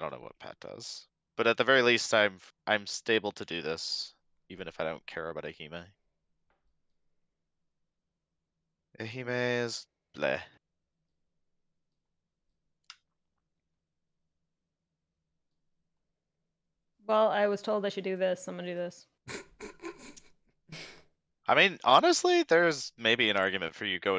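A young man talks casually into a close microphone, with pauses.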